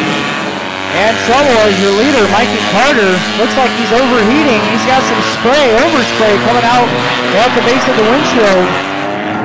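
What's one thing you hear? A man talks loudly near a car.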